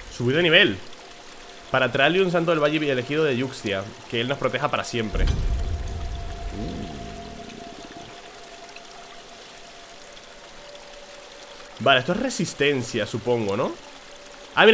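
A young man talks animatedly into a close microphone.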